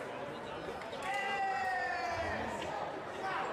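Fencers' shoes squeak on the floor.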